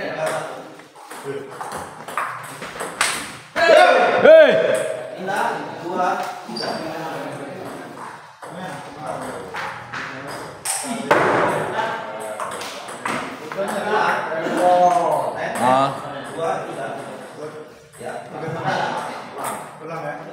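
Men talk and call out in an echoing room.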